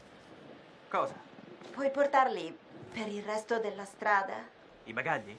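A young woman asks a question calmly, close by.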